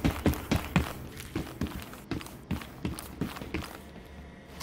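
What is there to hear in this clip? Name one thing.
Heavy footsteps thud steadily on a hard floor.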